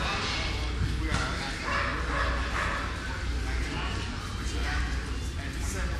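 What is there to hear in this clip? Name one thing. A man talks casually nearby outdoors.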